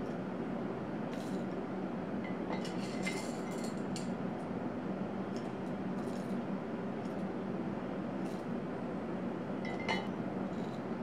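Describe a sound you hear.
Coffee beans rattle as a spoon scoops them into a glass jar.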